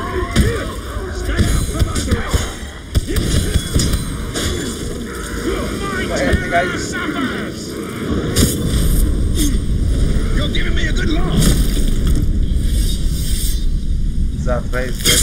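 Male warriors grunt and yell as they fight.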